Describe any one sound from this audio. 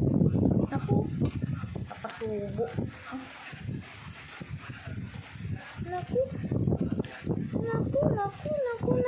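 A dog eats noisily from a metal bowl, chewing and lapping close by.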